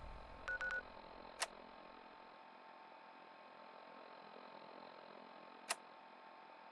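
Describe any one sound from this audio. Soft electronic clicks sound as a handheld device's menu is switched.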